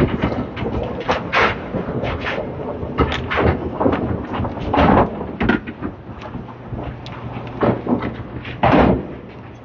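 A bowling ball rolls down a wooden lane with a low rumble.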